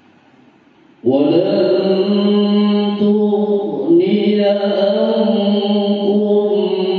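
A man chants loudly and melodically through a microphone in an echoing room.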